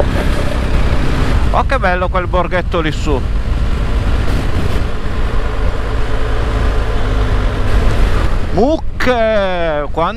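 A motorcycle engine hums steadily.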